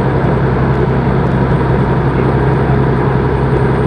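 A passing truck rushes by close alongside.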